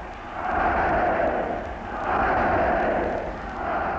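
A large crowd cheers and roars in swelling waves.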